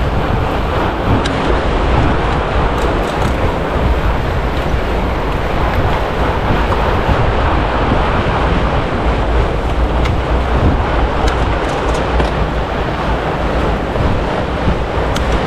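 Wind rushes steadily past, loud and close.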